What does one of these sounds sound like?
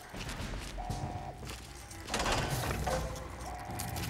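A heavy metal door grinds and slides open.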